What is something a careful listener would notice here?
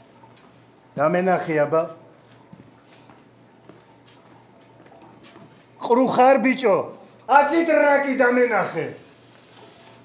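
A man speaks in a low, calm voice nearby.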